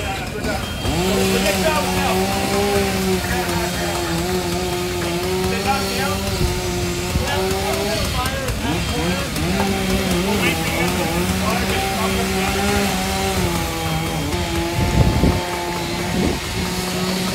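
A power saw drones steadily.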